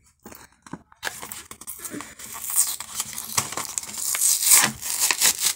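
Foil wrapping tears open with a crisp rip.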